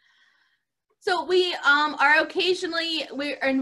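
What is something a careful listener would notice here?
A middle-aged woman sings clearly close to a microphone.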